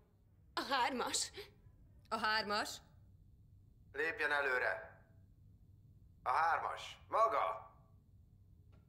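A man speaks loudly in short, clipped phrases.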